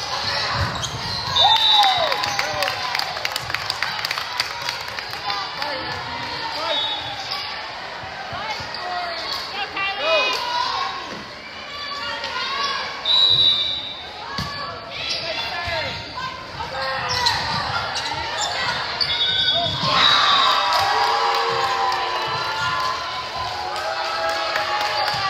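A crowd of young women cheers and shouts in a large echoing gym.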